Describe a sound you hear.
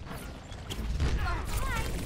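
An explosion booms in a game.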